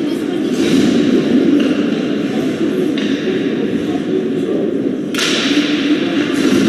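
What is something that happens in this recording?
A crowd of spectators murmurs and chatters in a large echoing arena.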